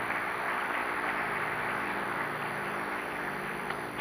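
A seated audience murmurs in a large hall.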